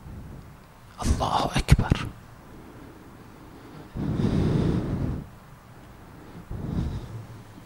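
A man speaks slowly and solemnly into a microphone, with pauses between phrases.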